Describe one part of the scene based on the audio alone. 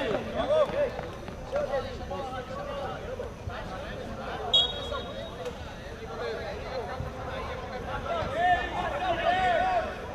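Men shout to each other in the distance, outdoors.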